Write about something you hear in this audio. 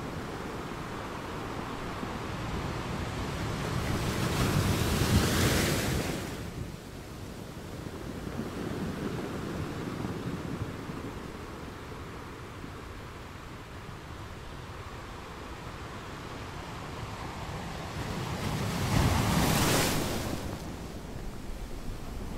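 Ocean waves roll in and crash onto rocks, surging and receding.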